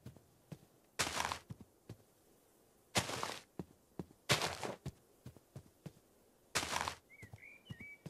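Footsteps swish on grass in short bursts.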